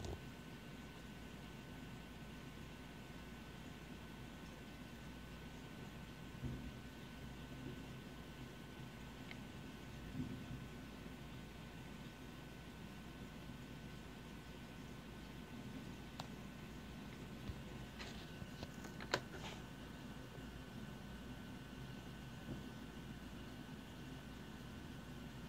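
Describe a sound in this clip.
Heavy rain falls outside, muffled through a closed window.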